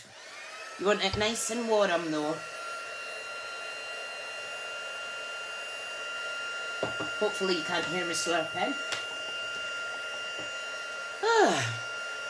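A heat tool blows with a steady whirring hum.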